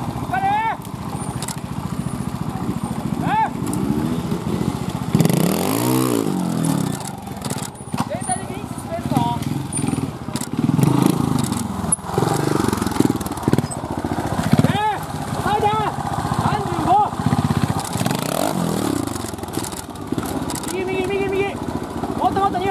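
A motorcycle engine revs in sharp bursts, rising and falling in pitch.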